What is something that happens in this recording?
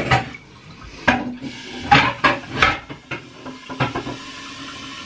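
Dishes clink and clatter in a sink.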